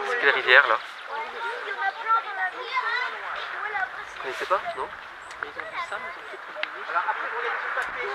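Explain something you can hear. Young children chatter and call out.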